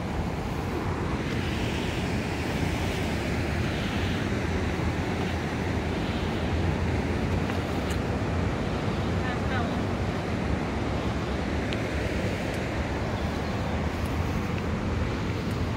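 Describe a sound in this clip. A swollen river rushes nearby.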